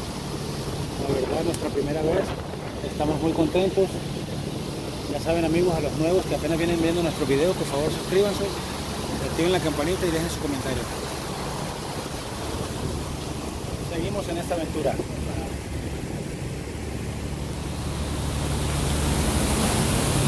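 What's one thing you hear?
Wind blows across the water outdoors.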